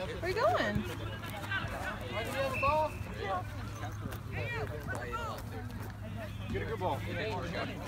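Young boys shout and call out to each other outdoors nearby.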